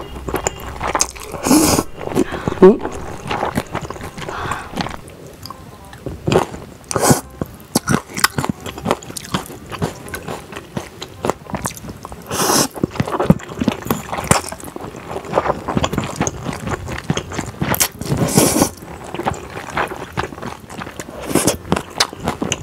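Chopsticks clink against a metal bowl.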